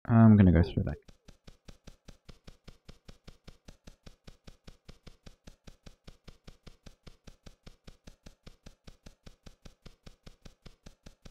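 Footsteps tread quickly and evenly on the ground in a video game.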